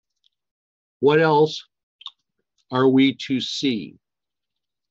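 An elderly man speaks slowly over an online call.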